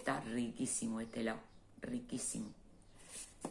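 A middle-aged woman speaks close to the microphone with animation.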